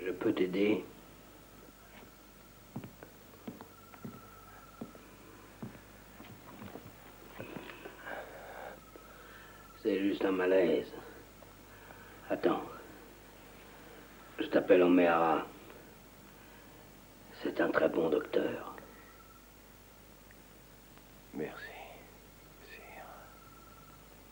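A man speaks quietly and intimately, close by, in short bursts.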